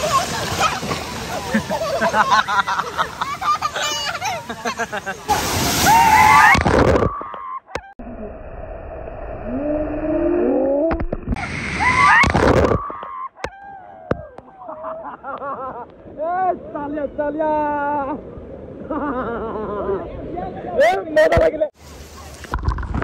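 Water splashes loudly close by.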